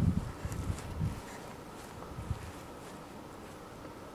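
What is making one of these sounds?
A golf club thumps into sand.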